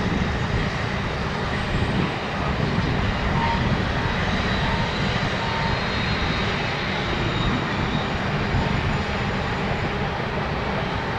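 Diesel locomotives rumble steadily in the distance as a freight train rolls by.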